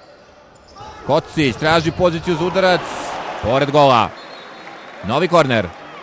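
A crowd cheers loudly in a large echoing hall.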